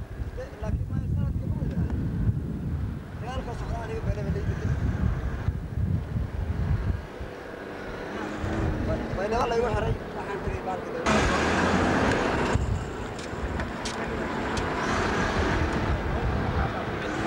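A vehicle rumbles and bumps along a rough dirt road.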